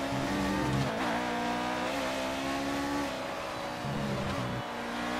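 A racing car engine whines loudly, its pitch rising and falling as it shifts gears.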